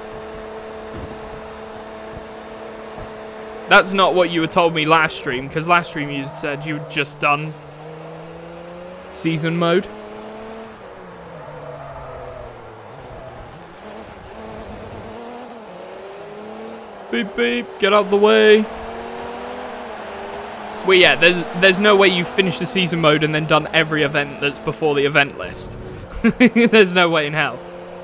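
A race car engine roars, rising and falling in pitch as the gears change.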